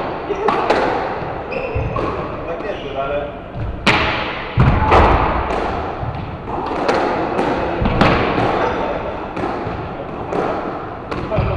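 Sports shoes squeak and thud on a wooden floor.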